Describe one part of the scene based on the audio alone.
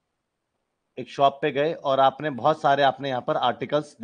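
A man speaks clearly into a close microphone, explaining with animation.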